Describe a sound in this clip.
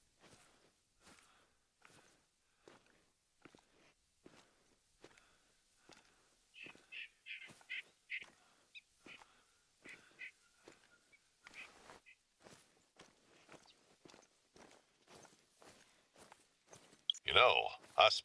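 Footsteps swish through grass at a walking pace.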